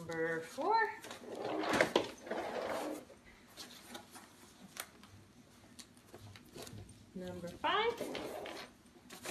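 A woman speaks nearby in a lively, sing-song voice.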